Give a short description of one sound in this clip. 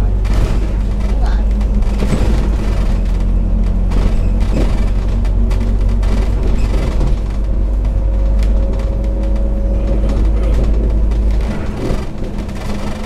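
A bus engine rumbles steadily, with rattles and knocks.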